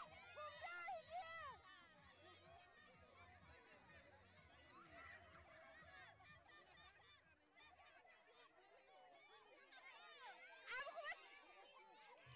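A crowd of women cheers and shrieks loudly.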